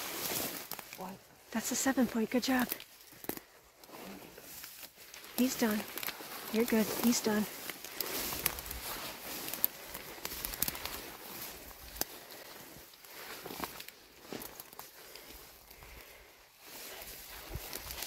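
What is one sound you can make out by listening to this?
Dry brush rustles as a person moves through it.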